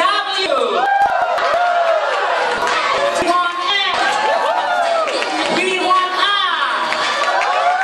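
A crowd of young people cheers and screams loudly in a large hall.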